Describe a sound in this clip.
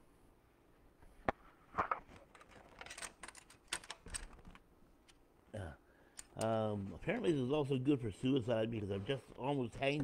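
A plastic board clicks and rattles as it is handled.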